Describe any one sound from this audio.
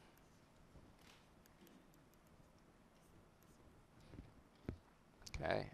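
A pen taps and scratches on a tablet.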